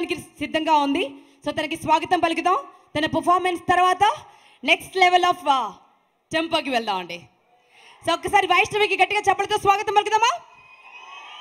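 A young woman speaks with animation through a microphone in a large hall.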